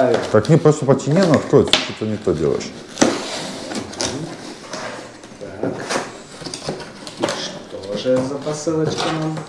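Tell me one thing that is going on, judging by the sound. Cardboard scrapes and rustles as a box is torn open.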